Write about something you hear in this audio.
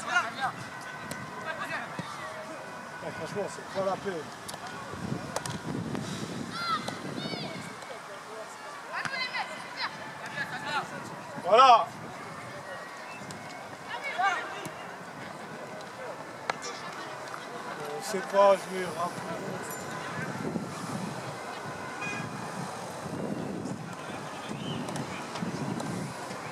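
Young boys shout to each other across an outdoor football pitch.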